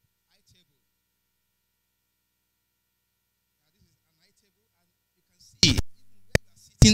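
A man speaks into a microphone over a loudspeaker.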